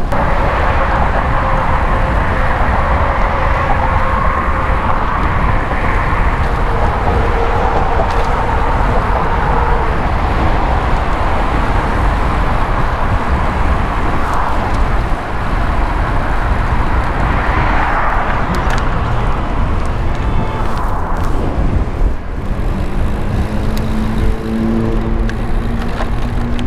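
A vehicle engine hums steadily beneath the rider.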